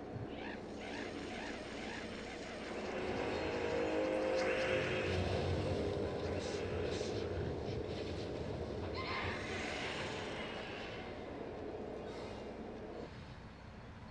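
Game music plays with chimes and whooshing effects.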